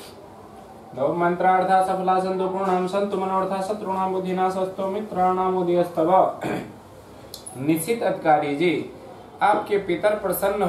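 A man chants prayers in a steady, loud voice nearby.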